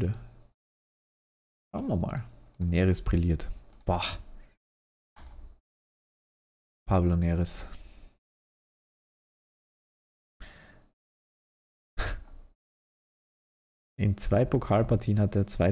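A young man talks calmly and close into a microphone, in bursts with pauses.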